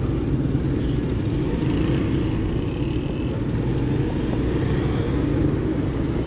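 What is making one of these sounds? A motorcycle engine idles with a low, steady rumble close by.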